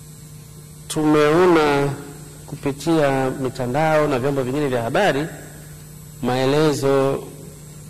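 A man speaks formally through a microphone in an echoing hall.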